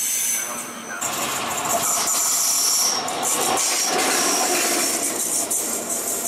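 An electric locomotive rumbles past close by.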